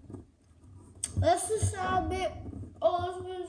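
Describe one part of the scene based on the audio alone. A young boy speaks loudly and animatedly close by.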